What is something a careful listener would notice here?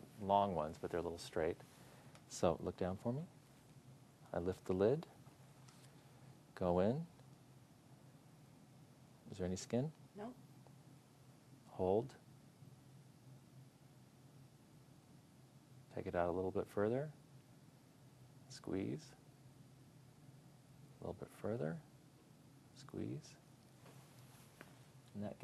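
A man talks calmly and clearly, close by.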